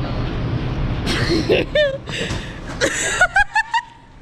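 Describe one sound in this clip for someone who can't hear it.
Young women laugh and shout excitedly close by.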